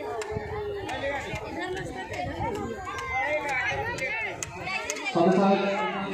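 A crowd of men, women and children chatter all around outdoors.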